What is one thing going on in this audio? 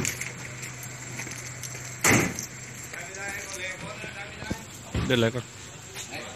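A car door opens with a metallic clunk.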